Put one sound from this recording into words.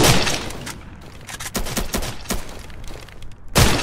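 Blows land with dull thuds in a scuffle.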